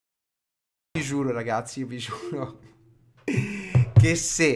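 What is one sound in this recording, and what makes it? A man talks through a microphone with animation.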